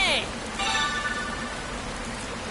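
A short bright chime rings.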